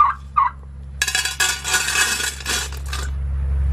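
Seeds pour with a rattle into a metal bucket.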